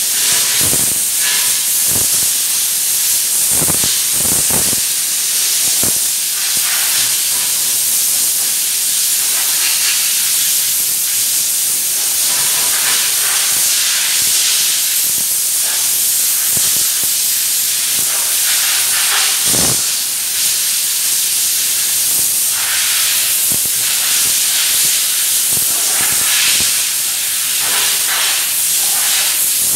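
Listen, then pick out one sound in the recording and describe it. A spray gun hisses steadily as it sprays paint.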